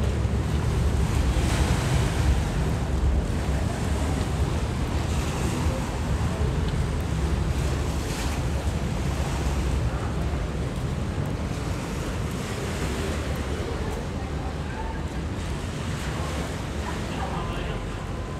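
River water churns and splashes close by.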